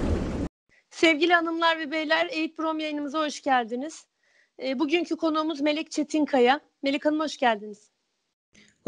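A middle-aged woman speaks cheerfully over an online call.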